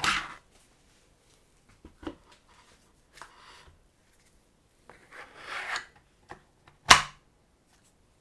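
Plastic parts click and knock against each other as they are handled.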